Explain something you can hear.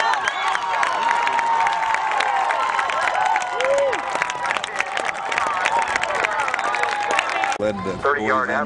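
A crowd cheers and shouts loudly outdoors.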